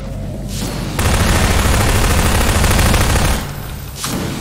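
A rapid burst of gunfire rattles loudly.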